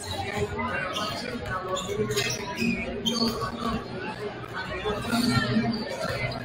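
A crowd chatters in the stands.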